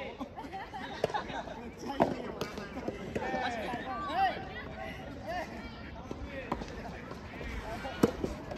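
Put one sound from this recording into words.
Tennis rackets strike a ball with sharp pops, outdoors.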